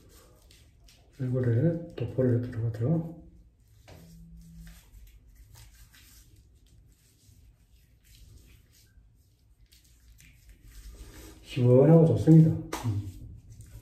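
A man's fingers rub shaving foam on his face.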